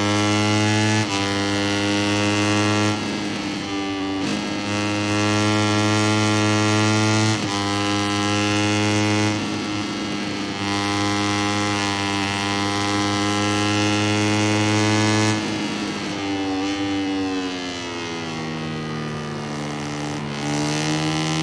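A motorcycle engine drops in pitch as the gears shift up and down.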